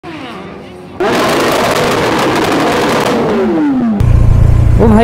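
A motorcycle engine revs loudly close by, then its pitch falls away.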